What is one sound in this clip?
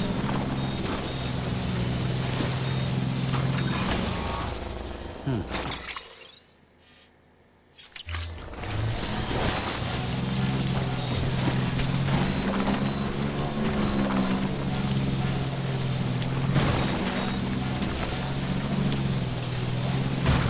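Tyres crunch over rocks and gravel.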